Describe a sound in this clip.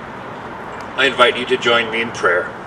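A man speaks calmly through a microphone and loudspeaker outdoors.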